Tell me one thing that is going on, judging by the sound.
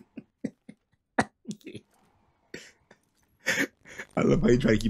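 A man laughs loudly close to a microphone.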